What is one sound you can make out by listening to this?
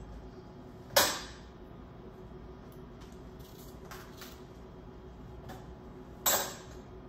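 A glass knocks down onto a counter.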